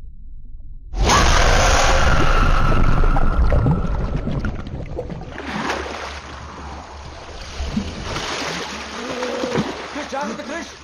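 Water churns and splashes loudly.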